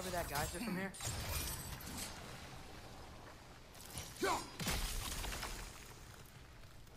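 An axe smashes into ice with a loud crash.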